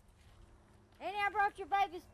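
An older woman speaks close by with animation.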